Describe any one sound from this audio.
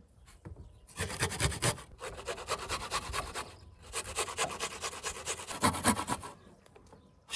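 Garlic scrapes rhythmically against a metal grater.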